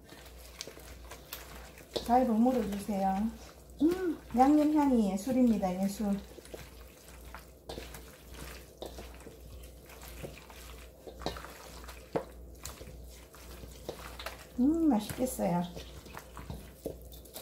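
Hands squelch and toss chunks of radish in a metal bowl.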